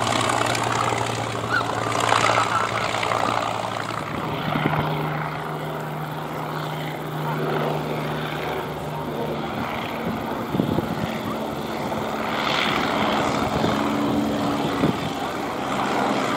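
A propeller plane's engine drones steadily overhead.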